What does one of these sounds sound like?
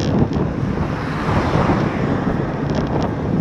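A car passes close by with a rising and fading whoosh.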